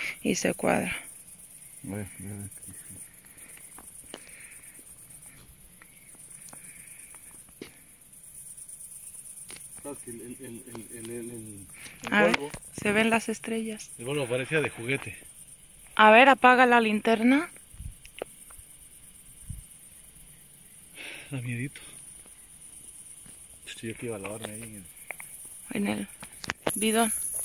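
A man speaks nearby in short phrases.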